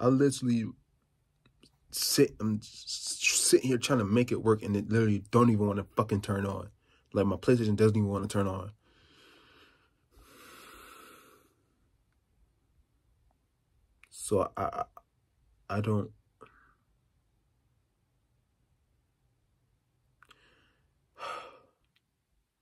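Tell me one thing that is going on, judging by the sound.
A young man talks with animation close to a phone microphone, in bursts with pauses.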